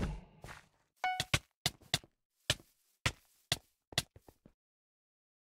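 A sword strikes repeatedly in quick, sharp hits.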